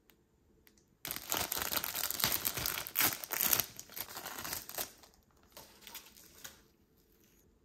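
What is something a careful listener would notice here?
A plastic wrapper crinkles and rustles loudly as it is torn open.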